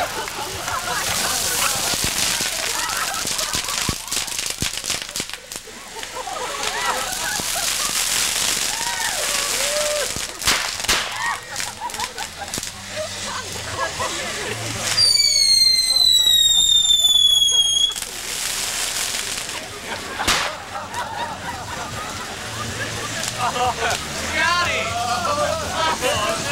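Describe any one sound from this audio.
Fireworks hiss loudly as they spray sparks.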